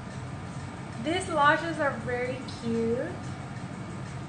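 A young woman speaks briefly and expressively close by.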